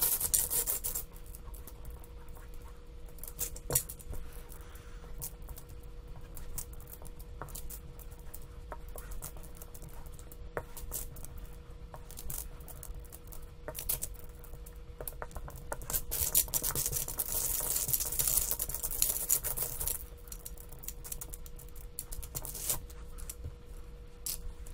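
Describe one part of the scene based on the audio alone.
Plastic tiles click as a hand sets them into a row, one by one.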